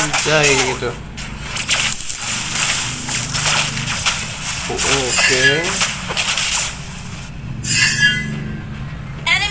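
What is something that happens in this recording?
Game sound effects of magic blasts and weapon strikes whoosh and clash.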